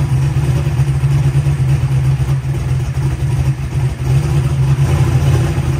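A loud engine idles with a deep, lumpy rumble close by.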